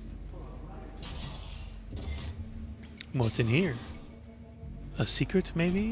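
A metal hatch clanks open.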